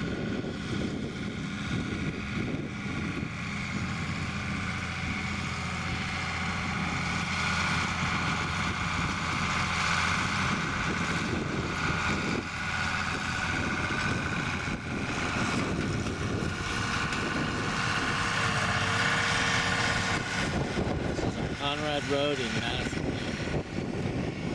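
A harrow rattles and clatters as a tractor drags it over soil.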